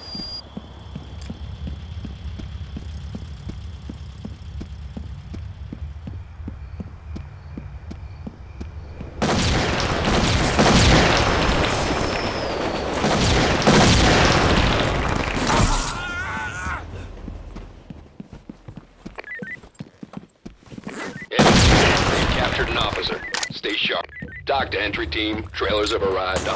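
Footsteps tread steadily over hard ground.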